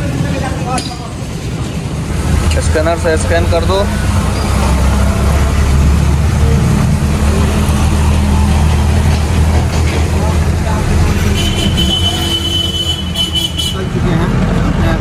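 An engine idles with a low, steady rumble.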